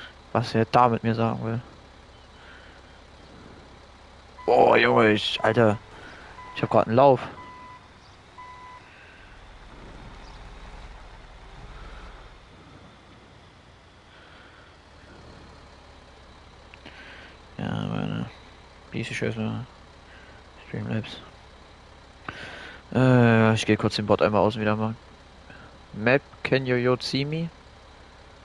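A bulldozer's diesel engine rumbles as it crawls along.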